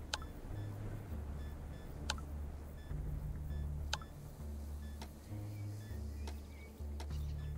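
Short menu clicks sound as items are picked.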